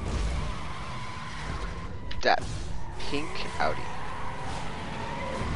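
A car engine idles and revs with a low rumble.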